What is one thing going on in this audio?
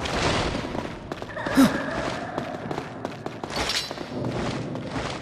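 A magical effect whooshes and shimmers.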